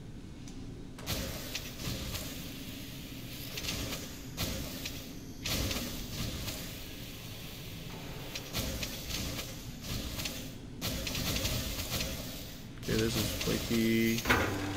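A cutting beam hisses and crackles against metal.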